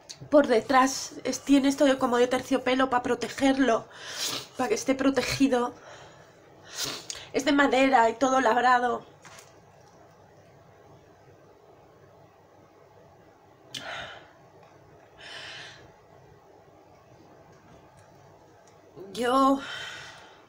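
A middle-aged woman talks close to the microphone with animation.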